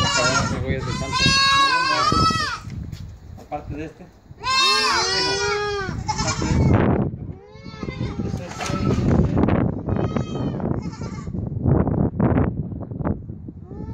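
Young goats bleat loudly and repeatedly at close range.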